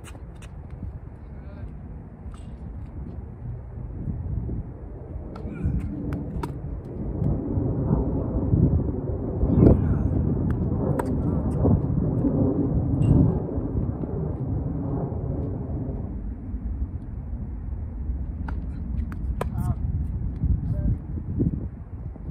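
Tennis balls are struck with racquets in a steady rally.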